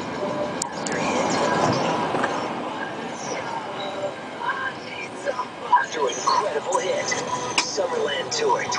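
A car hums steadily as it drives along a road, heard from inside.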